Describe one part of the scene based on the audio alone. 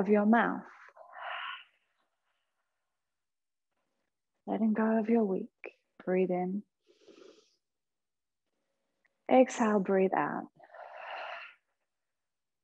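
A woman breathes out slowly and audibly.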